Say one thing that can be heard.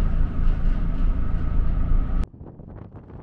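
A ship's engine drones steadily indoors.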